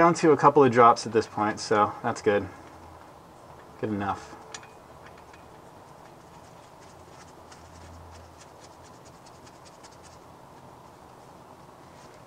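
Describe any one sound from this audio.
A metal plug scrapes and clicks faintly as a hand turns it.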